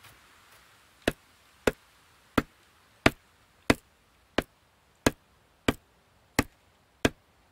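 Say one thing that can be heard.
A stone tool knocks against a tree trunk in sharp, regular blows.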